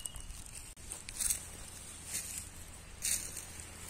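Dry leaves rustle and crunch underfoot.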